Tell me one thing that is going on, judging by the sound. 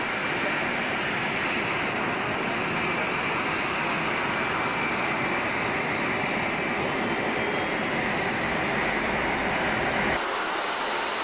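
A four-engine Boeing 747 jet roars as it takes off at full thrust.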